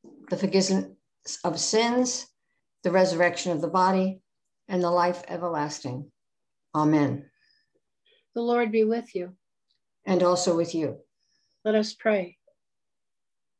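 An older woman reads aloud steadily, heard through an online call.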